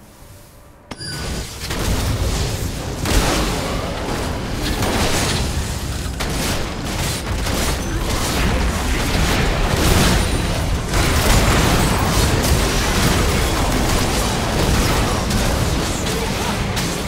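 Game spells and weapon hits crash and whoosh in a busy battle.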